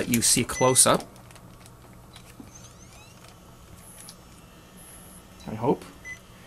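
A handheld camcorder clicks and whirs as it is handled.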